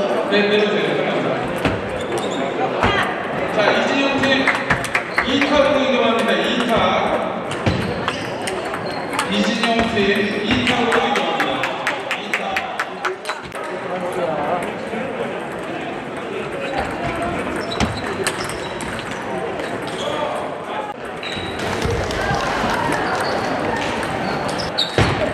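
Ping-pong balls click sharply against paddles and tables, echoing in a large hall.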